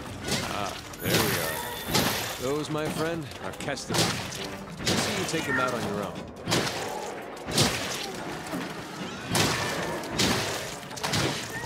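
Blade strikes thud against a creature.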